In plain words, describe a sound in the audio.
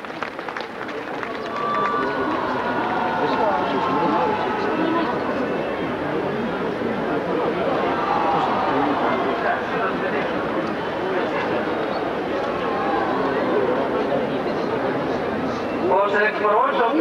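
A large crowd murmurs and chants outdoors.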